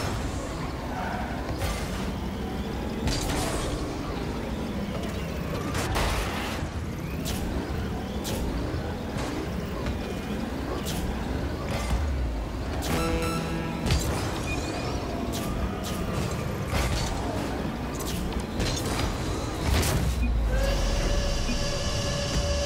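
A game car engine hums and boosts with a roaring whoosh.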